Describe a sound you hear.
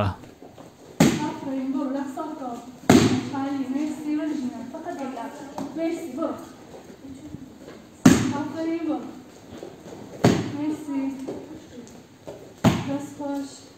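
Gloved fists thud sharply against punching pads.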